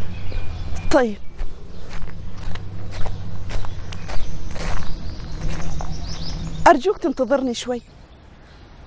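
A young woman talks on a phone close by.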